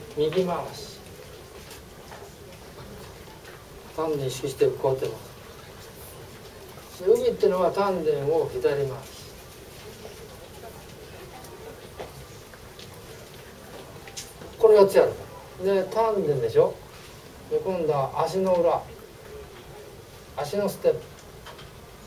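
An elderly man speaks calmly in short phrases, close by.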